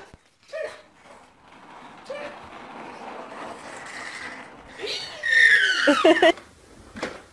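A baby squeals and laughs loudly close by.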